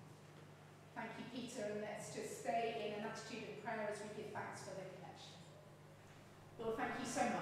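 A middle-aged woman speaks calmly into a microphone in an echoing room.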